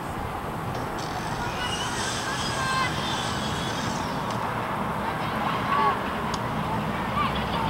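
Distant players shout across a sports field.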